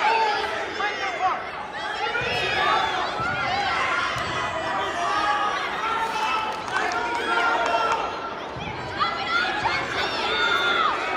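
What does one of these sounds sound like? A crowd of spectators chatters and shouts throughout a large echoing hall.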